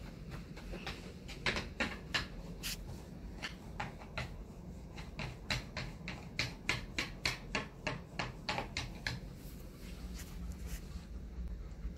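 A dog pants rapidly close by.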